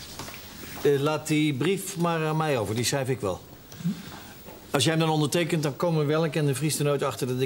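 An older man speaks firmly nearby.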